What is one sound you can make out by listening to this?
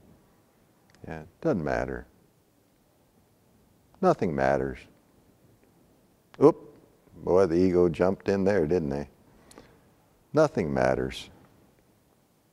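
An elderly man speaks calmly in short phrases into a close microphone.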